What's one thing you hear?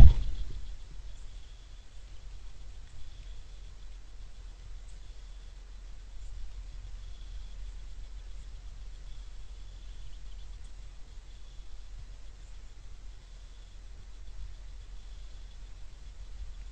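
Birds chirp faintly.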